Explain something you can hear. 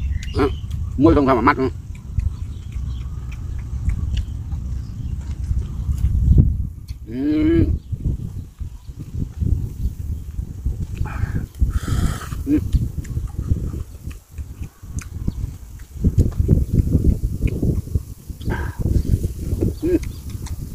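A man hums and makes short sounds of delight with his mouth full.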